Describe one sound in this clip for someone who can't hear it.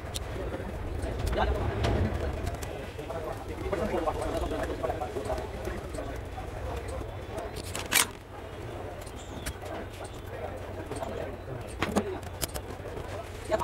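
Plastic parts click and rattle as hands handle them.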